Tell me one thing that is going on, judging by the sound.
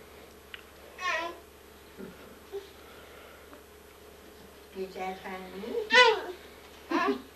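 A toddler squeals and babbles.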